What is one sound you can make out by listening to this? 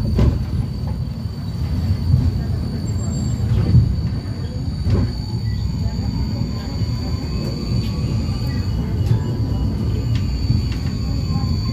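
A tram rumbles steadily along its rails.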